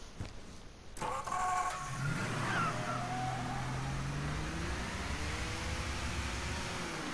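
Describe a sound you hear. A car engine starts and revs as the car drives off.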